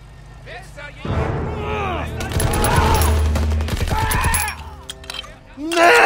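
A silenced rifle fires bursts of rapid, muffled shots.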